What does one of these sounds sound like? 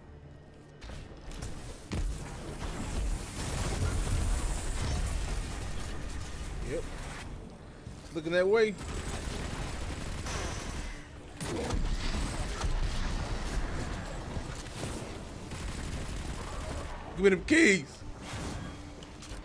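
Rapid gunfire and energy blasts roar loudly.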